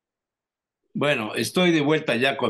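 Another elderly man speaks calmly over an online call.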